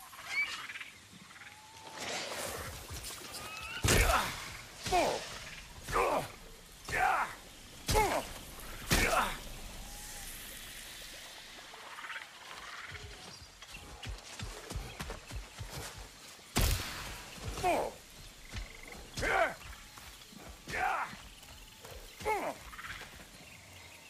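Footsteps tread through grass and undergrowth.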